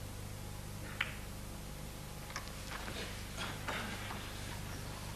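Snooker balls click against each other and roll across the table.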